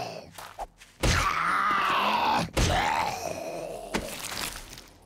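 Heavy blows thud against a body.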